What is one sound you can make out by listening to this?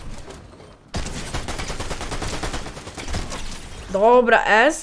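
Rapid gunfire cracks in a video game.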